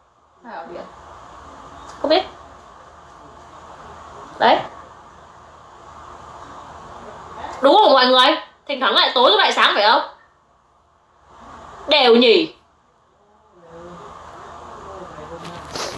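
A young woman speaks calmly and close to the microphone, in short bursts.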